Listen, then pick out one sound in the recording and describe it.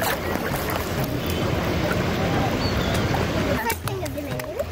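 Shallow water swirls and splashes around wading feet.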